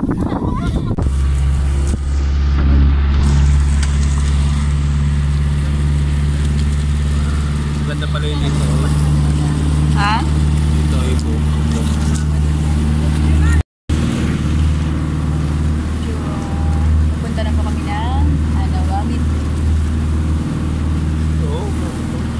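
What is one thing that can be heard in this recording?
A boat engine drones steadily and loudly.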